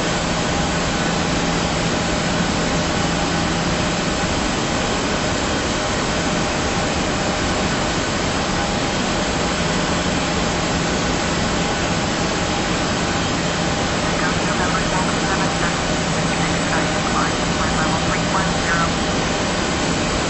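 A jet airliner's engines roar steadily in flight.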